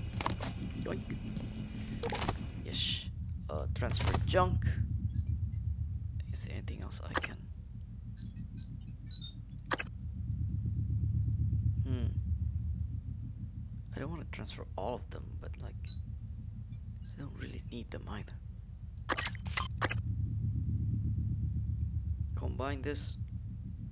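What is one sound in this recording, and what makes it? Short electronic menu clicks and blips sound now and then.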